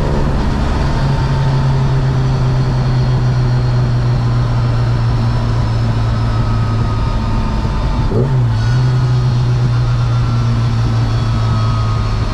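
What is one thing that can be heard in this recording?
A car engine roars loudly and steadily from inside the car.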